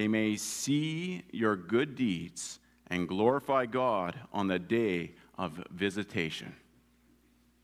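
A man reads aloud calmly through a microphone.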